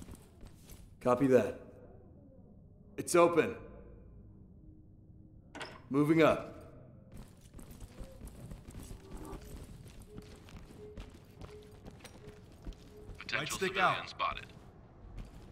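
A man talks into a microphone in short bursts.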